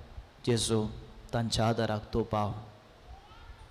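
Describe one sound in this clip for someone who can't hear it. A man speaks with feeling into a microphone, echoing slightly in a large room.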